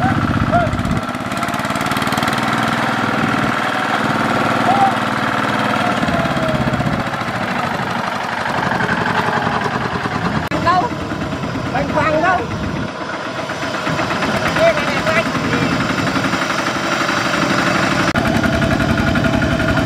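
A small diesel engine chugs loudly and steadily close by.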